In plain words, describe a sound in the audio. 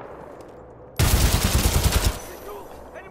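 An automatic weapon fires a short, loud, rapid burst.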